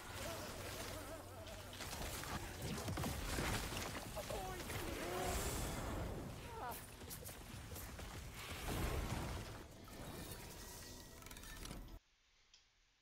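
Game spells crackle and explode in bursts.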